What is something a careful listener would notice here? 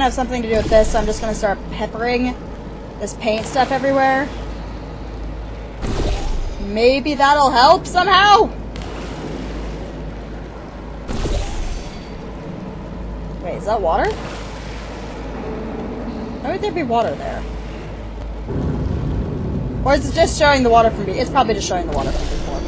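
A young woman talks with animation through a close microphone.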